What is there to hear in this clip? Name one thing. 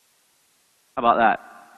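A man speaks with animation through a headset microphone.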